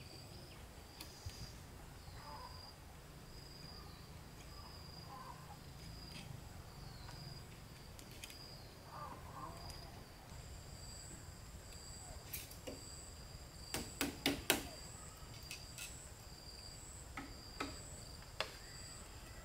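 Bamboo poles knock and clack sharply.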